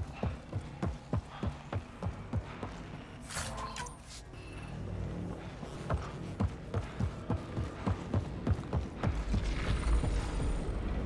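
Heavy armoured footsteps thud steadily on a metal floor.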